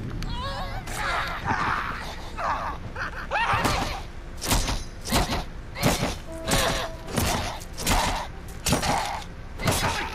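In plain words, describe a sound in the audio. A young woman grunts with effort.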